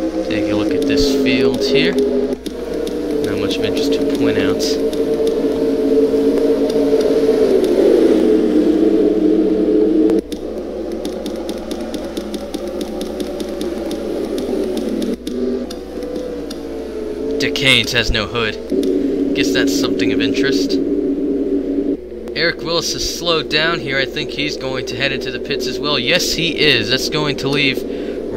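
Race car engines roar and drone steadily as cars speed past.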